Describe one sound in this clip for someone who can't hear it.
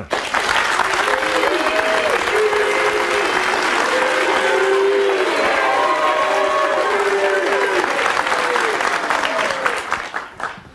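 A crowd of people shout and whoop.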